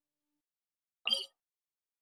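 A short soft chime sounds.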